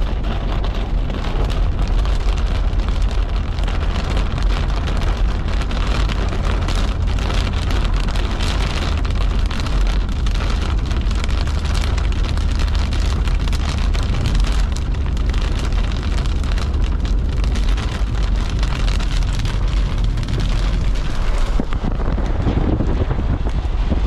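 Rain patters steadily on a car windshield.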